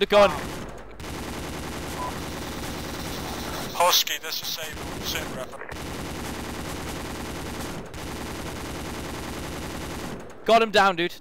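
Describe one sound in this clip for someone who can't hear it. A heavy machine gun fires in bursts.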